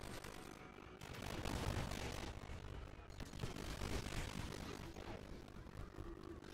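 Energy blasts crackle and burst.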